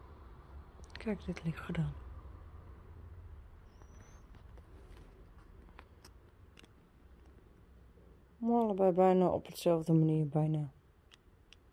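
A dog whines and howls close by.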